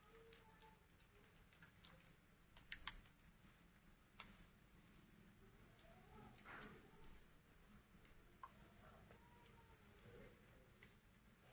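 Small items click and tap against each other.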